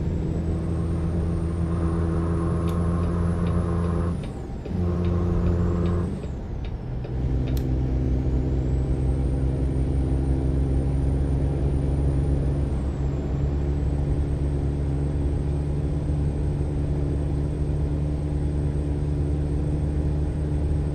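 A heavy truck engine drones steadily, dipping briefly as the gears change.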